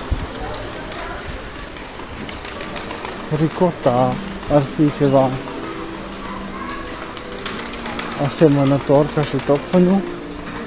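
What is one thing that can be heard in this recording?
Indoor background hum fills a large, echoing space.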